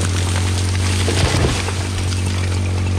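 A tree cracks and crashes to the ground.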